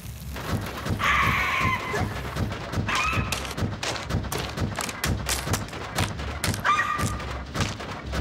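A cartoon bird squawks in short, high bursts.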